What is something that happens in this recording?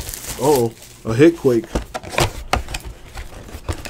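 Card packs clatter softly as they are handled.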